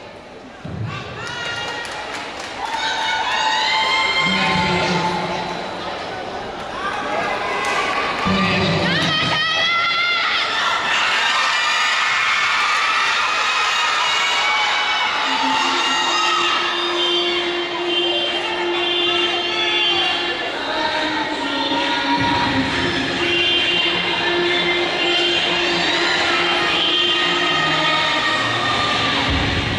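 Music with singing plays loudly through loudspeakers in a large echoing hall.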